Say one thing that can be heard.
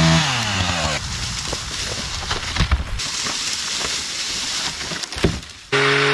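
A heavy branch scrapes and drags across dry leaves.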